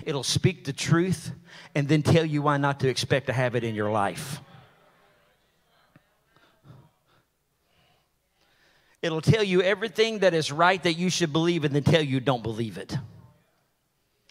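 A man speaks with animation through a microphone in a large echoing hall, pausing between phrases.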